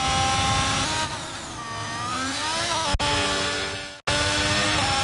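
A racing car engine slows and revs up again in a sweeping glide.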